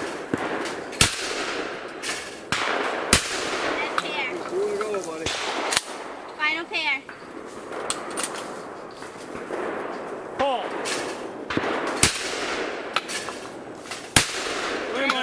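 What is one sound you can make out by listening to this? A shotgun fires loud single shots that echo outdoors.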